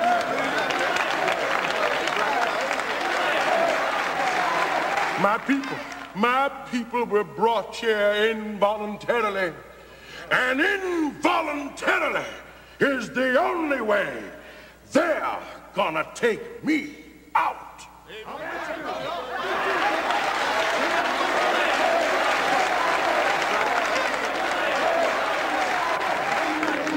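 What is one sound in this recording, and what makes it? A crowd claps and cheers in a large hall.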